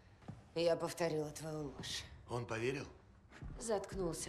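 A young woman speaks tensely and close by.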